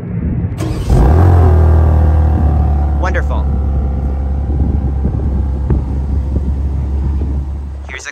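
A car engine idles with a deep, steady burble from the exhaust.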